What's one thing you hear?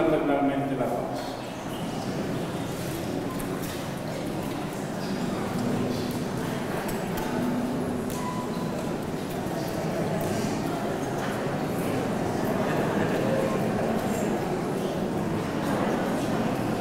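A crowd of men and women chatter and greet one another.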